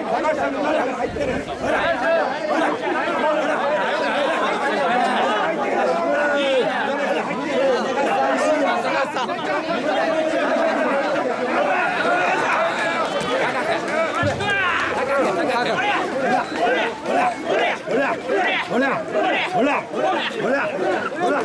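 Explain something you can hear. A large crowd of men chant loudly together in rhythm, close by.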